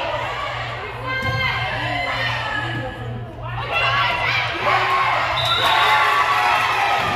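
Young women shout and call to each other in a large echoing gym.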